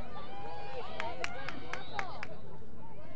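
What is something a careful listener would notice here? Lacrosse sticks clack together during play.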